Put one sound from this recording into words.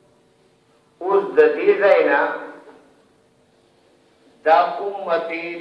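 A man speaks calmly nearby, with pauses.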